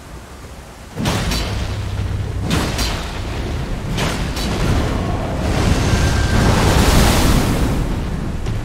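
A giant boss swings an axe with heavy crashing blows.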